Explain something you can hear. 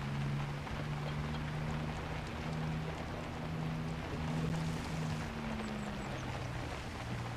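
Tyres splash and squelch through mud and puddles.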